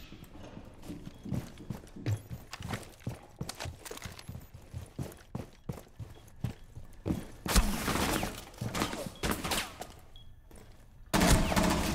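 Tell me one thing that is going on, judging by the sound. Footsteps thud quickly across a floor.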